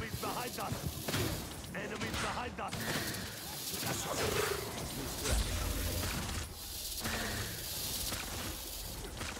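Video game weapons fire with sharp electronic blasts.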